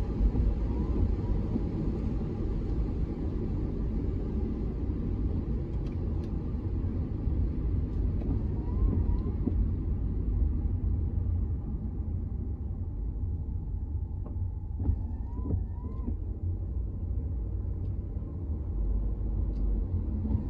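Rain patters on a car windshield.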